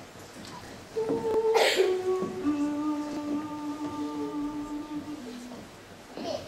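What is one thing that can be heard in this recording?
A children's choir sings a long, held note.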